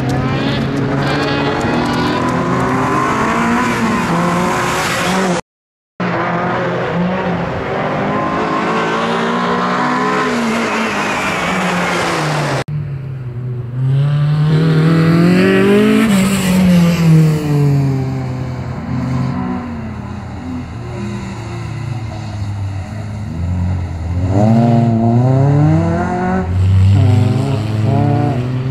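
A small car engine revs hard and whines through its gears.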